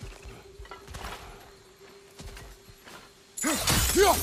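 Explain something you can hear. Heavy footsteps thud on soft ground.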